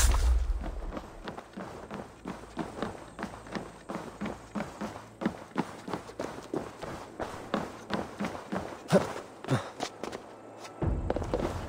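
Footsteps thud on wooden planks at a steady walking pace.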